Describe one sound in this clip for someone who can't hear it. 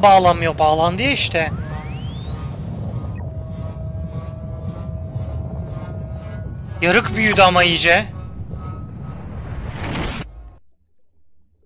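A deep rumbling drone hums, swells into a rushing roar and cuts off suddenly.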